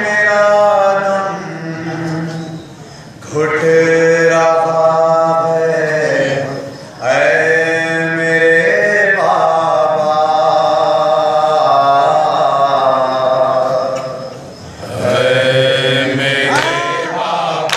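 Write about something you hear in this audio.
A young man sings a mournful chant loudly into a microphone.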